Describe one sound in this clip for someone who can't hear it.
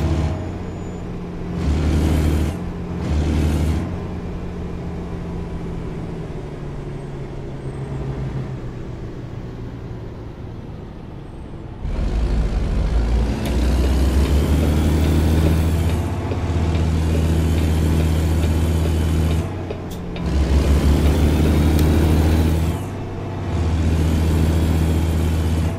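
A truck's diesel engine rumbles steadily and revs up and down as it drives.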